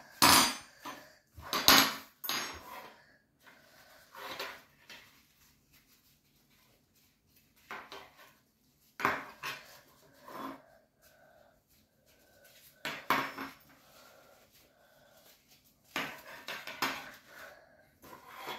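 Metal cutlery clinks and clatters on a wooden table.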